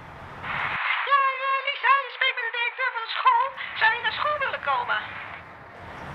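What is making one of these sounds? A young girl speaks quietly into a phone.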